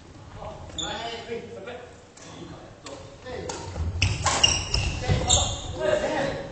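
Sneakers squeak on a hard floor in an echoing hall.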